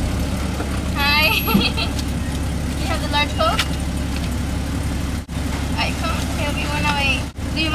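A man speaks in a high, squeaky voice close by.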